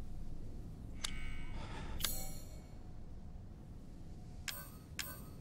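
Short electronic menu clicks and chimes sound a few times.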